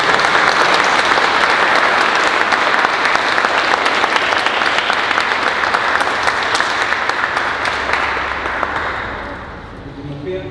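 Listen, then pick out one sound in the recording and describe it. An audience applauds in a large echoing hall, and the applause fades out.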